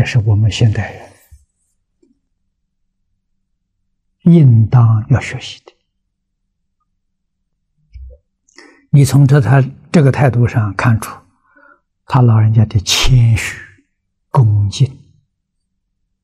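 An elderly man speaks calmly and closely into a microphone, in short phrases with pauses.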